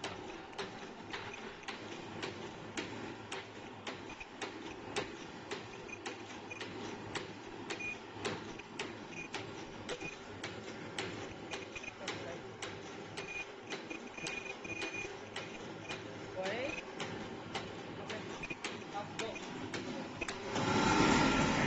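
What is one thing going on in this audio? A machine clicks in a steady, fast rhythm over a low mechanical hum.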